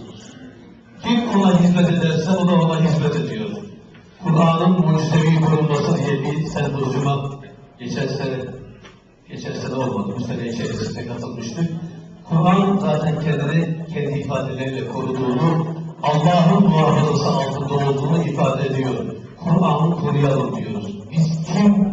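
A man chants melodically into a close microphone, in long sustained phrases with short pauses.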